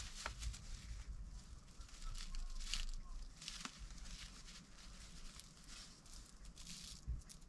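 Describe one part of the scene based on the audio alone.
A large bird rustles and flaps its feathers close by.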